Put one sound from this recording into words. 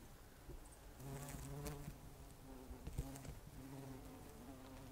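Bumblebees buzz close by, humming steadily.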